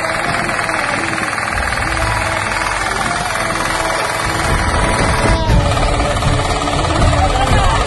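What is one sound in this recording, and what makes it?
A small engine runs loudly and steadily close by.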